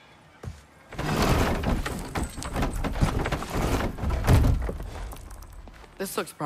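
Wooden crates knock and rattle as they are rummaged through.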